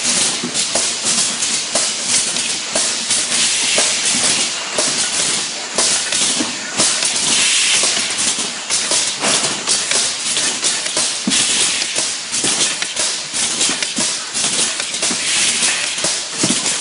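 Metal cans clink and rattle against each other on a conveyor.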